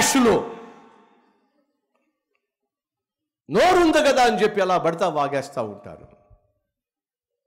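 A man speaks with animation through a microphone, echoing in a large hall.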